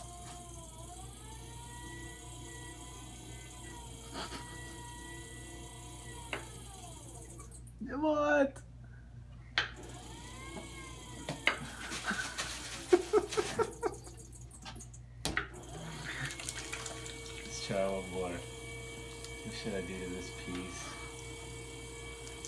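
A potter's wheel whirs steadily.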